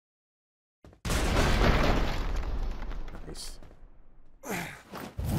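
Harsh combat sounds of blows and crashes burst out, then fade.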